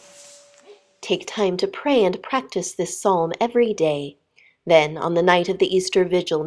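A boy sings in a high, clear voice.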